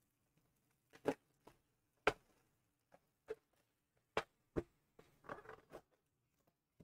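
A cardboard box knocks and taps as it is handled.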